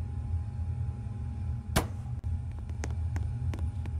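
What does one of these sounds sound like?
A door slides shut with a thud.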